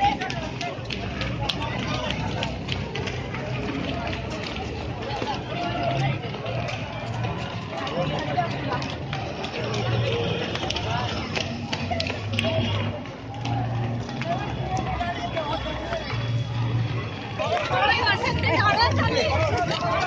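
Many footsteps patter on a road as a crowd runs past.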